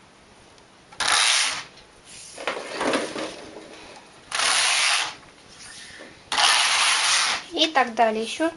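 A knitting machine carriage slides across the needle bed with a rasping whoosh.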